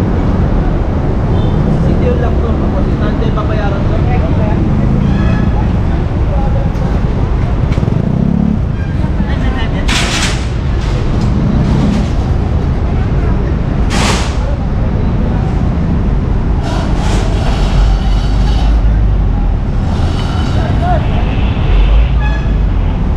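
Traffic rumbles along a busy street outdoors.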